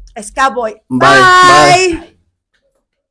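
A young woman exclaims loudly and excitedly close by.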